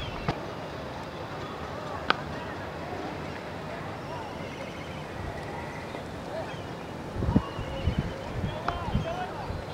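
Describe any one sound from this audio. A cricket bat sharply cracks against a ball outdoors.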